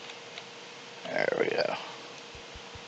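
A block crunches and breaks under a pickaxe.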